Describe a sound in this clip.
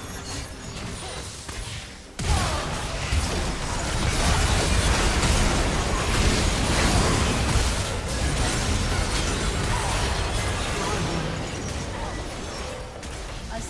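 Video game spell blasts and weapon clashes crackle and boom in a busy fight.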